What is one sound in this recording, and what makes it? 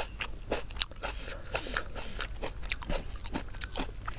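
Wet food squelches and rustles as fingers pick through it.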